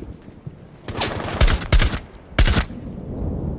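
Rifle shots crack loudly in quick succession.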